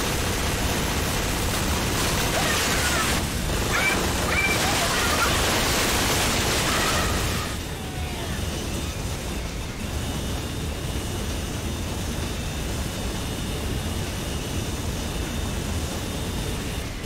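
A game hover vehicle hums as it drives.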